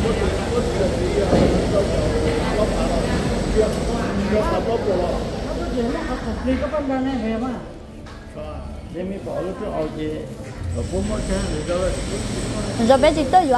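A man talks nearby in a conversational voice.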